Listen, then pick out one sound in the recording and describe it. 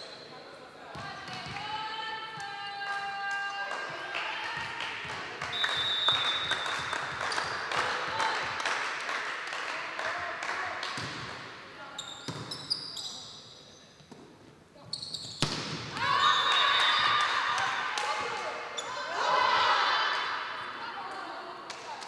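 Young women shout and call out to each other on the court.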